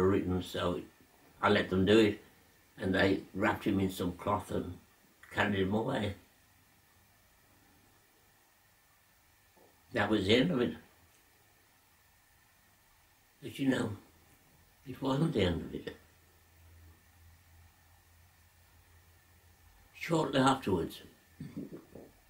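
An elderly man speaks slowly and calmly, close by, with long pauses.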